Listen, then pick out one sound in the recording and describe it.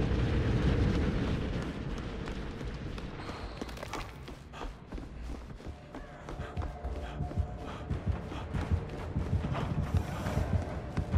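Footsteps thud quickly on a wooden floor as someone runs.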